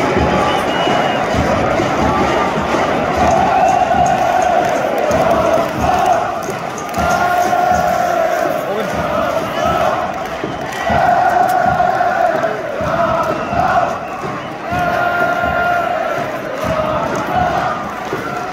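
A stadium crowd cheers and claps.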